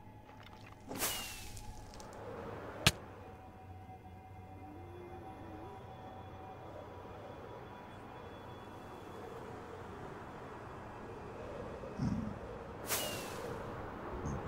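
A firework rocket launches with a sharp whoosh.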